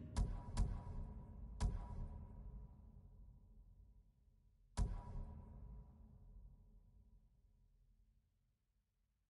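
Short echoing clicks sound, each ringing out slowly.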